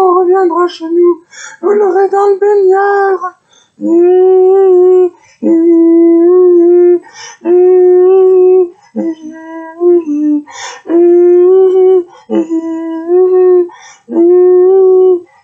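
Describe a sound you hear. A man sings long, held notes close to the microphone, breaking off between phrases.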